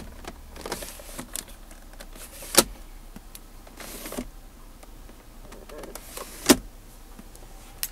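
A plastic lid clicks open and snaps shut.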